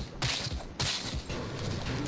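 Rapid gunshots crack at close range.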